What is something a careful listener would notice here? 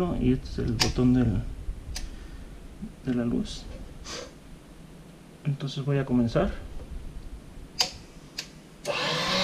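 Plastic and metal parts click and knock as a machine is handled.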